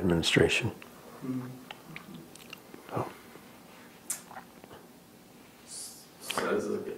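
An elderly man speaks calmly and slowly, close by.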